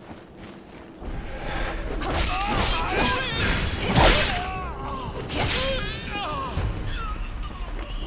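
Blades clash and slash in a fight.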